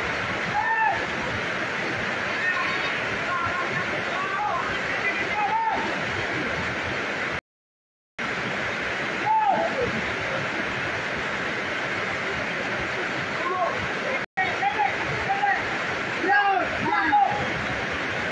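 Men shout to each other from a distance across an open pitch.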